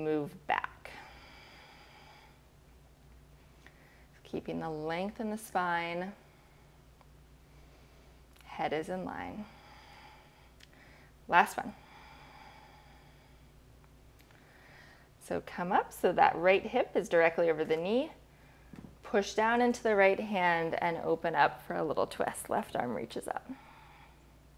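A young woman speaks calmly and clearly into a close microphone.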